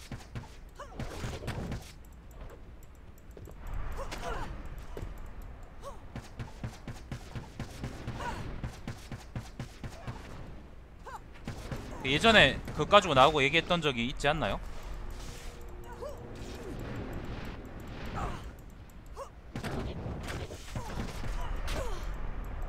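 Game spells crackle and whoosh in bursts.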